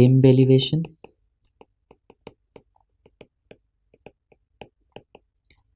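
A pen taps and scratches on a hard surface in quick strokes.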